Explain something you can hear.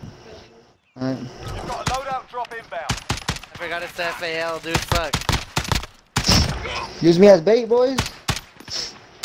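Young men talk with animation through a microphone.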